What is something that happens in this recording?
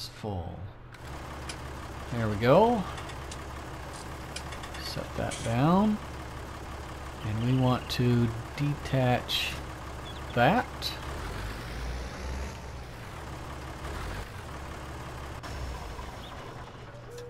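A tractor engine runs with a low, steady hum.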